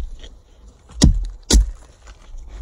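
An axe strikes wood with a sharp chop.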